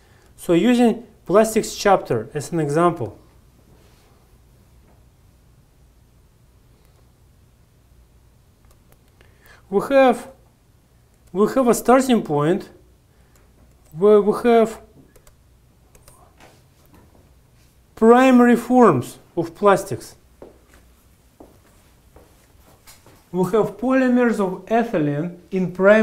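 A man lectures calmly through a microphone, with pauses between phrases.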